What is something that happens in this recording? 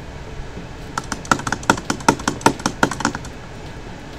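Rapid gunshots crack in quick succession.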